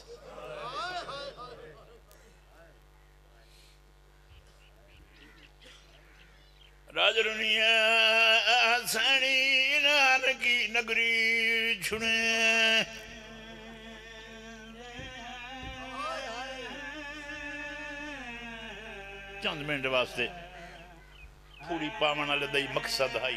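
A middle-aged man recites with passion into a microphone, heard through loudspeakers.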